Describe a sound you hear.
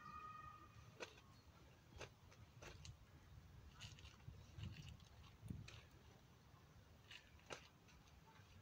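Shoes scuff and stamp on a paved path.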